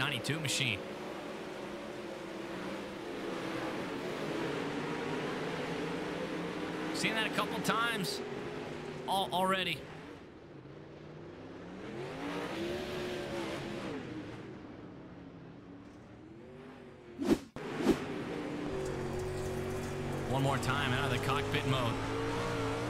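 Racing car engines roar loudly, rising and falling in pitch.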